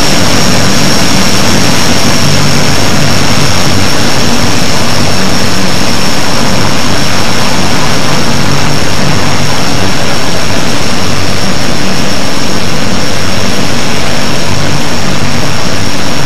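Propeller engines roar loudly and steadily close by.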